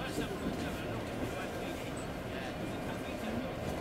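A diesel locomotive rumbles steadily as it rolls slowly into a station.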